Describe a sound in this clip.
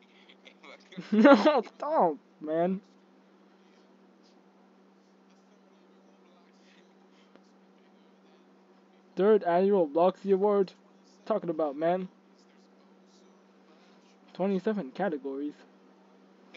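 A man speaks expressively into a microphone, with pauses between phrases.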